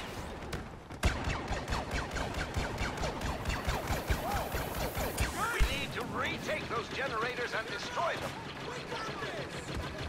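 Laser blasters fire in rapid bursts.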